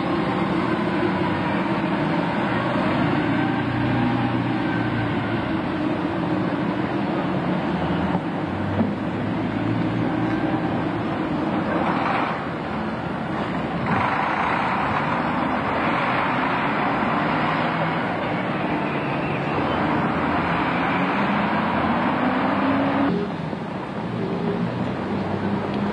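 Several bus engines idle and rumble in a busy street.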